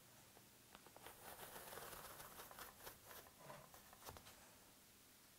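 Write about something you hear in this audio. Foam peels away from a metal plate with a soft tearing.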